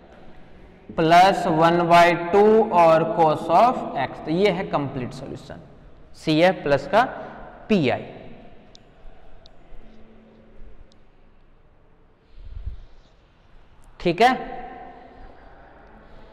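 A young man speaks in a lecturing tone, close by.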